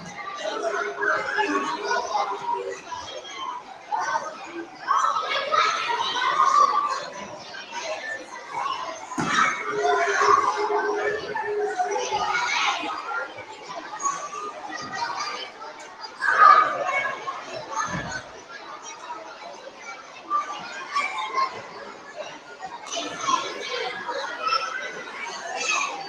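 A man speaks with animation in a large echoing hall.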